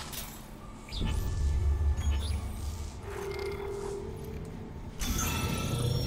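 Soft electronic beeps chirp as menu items are picked.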